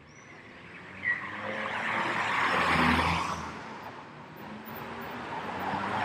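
A motorcycle rides past close by.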